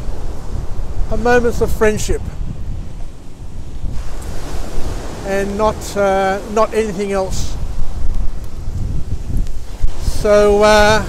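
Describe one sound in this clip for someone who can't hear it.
Waves break on a beach.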